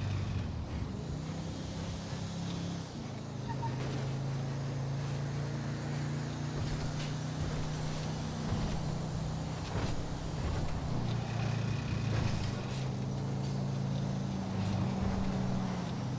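A car engine hums steadily and rises and falls as the car drives along.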